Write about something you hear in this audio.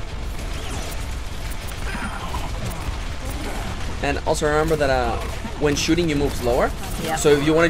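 Energy guns fire in rapid bursts.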